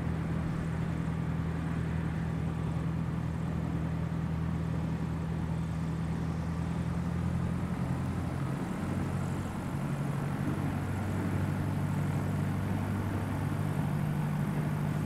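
A small propeller plane's engine drones steadily, shifting in pitch as it taxis.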